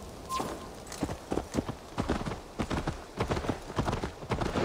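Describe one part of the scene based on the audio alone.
Hooves clop on a snowy track.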